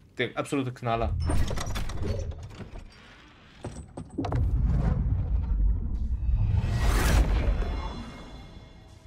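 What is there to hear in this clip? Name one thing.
A heavy metal crate grinds and rumbles open.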